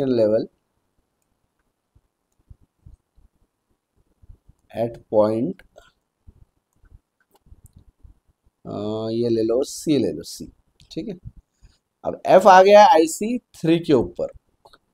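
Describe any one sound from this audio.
A young man speaks calmly and close to a microphone, in short bursts with pauses.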